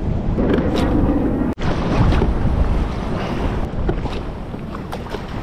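Waves slosh and lap against a kayak hull.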